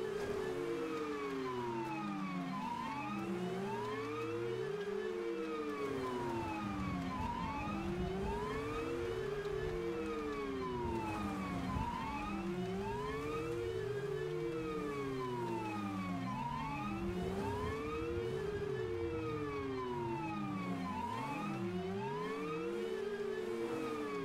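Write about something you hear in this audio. A police siren wails up and down close by.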